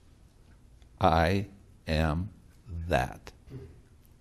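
An elderly man laughs softly.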